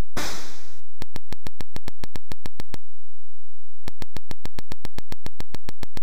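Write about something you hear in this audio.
Rapid electronic ticks repeat in a steady rhythm.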